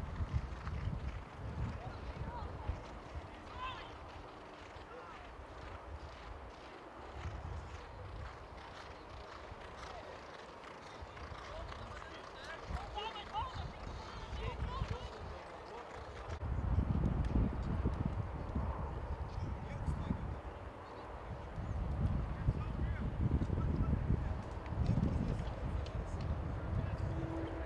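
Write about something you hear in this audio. Horses gallop across turf, hooves thudding.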